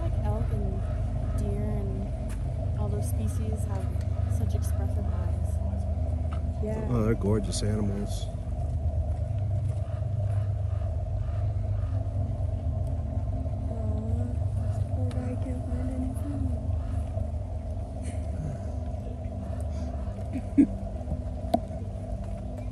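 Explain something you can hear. An elk crunches feed from a bowl close by.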